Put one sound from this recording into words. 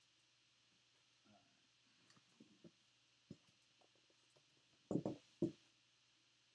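A metal case is handled with soft knocks.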